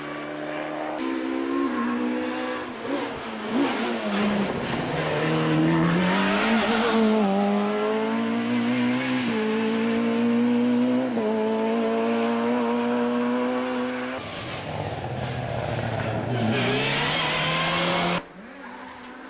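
A second rally car engine screams at high revs as the car races past.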